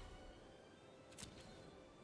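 Game sound effects whoosh as cards fan out and flip.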